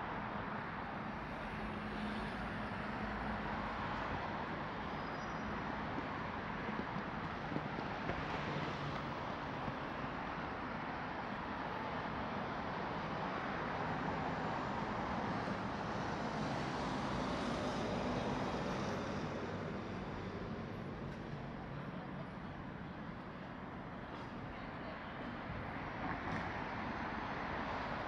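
City traffic hums steadily along a nearby road.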